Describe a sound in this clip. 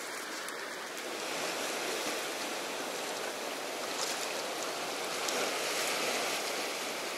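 Water laps and splashes gently in open sea.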